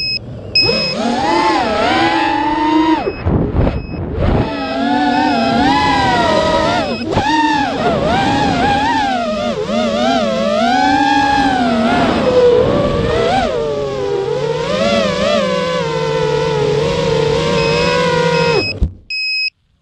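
Small drone propellers whine loudly, rising and falling in pitch as the drone swoops and turns.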